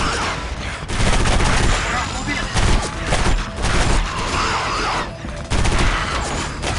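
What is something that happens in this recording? Two guns fire in rapid bursts.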